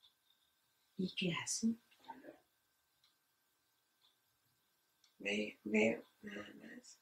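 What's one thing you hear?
A woman speaks calmly nearby, in short bursts with pauses.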